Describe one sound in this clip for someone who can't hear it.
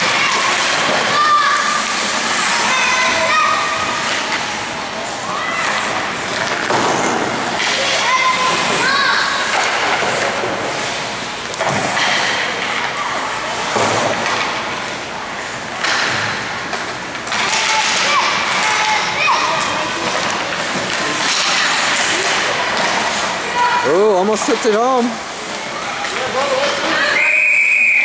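Skates scrape and swish across the ice in a large echoing rink.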